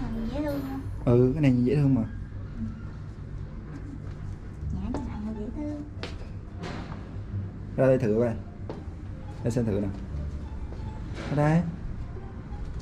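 A young woman speaks close by in short, lively bursts.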